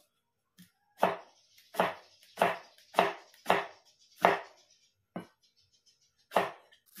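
A knife chops on a wooden board in quick, sharp knocks.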